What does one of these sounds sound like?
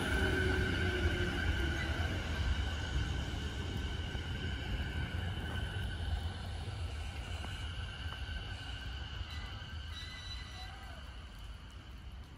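An electric train's motor whines steadily and slowly fades.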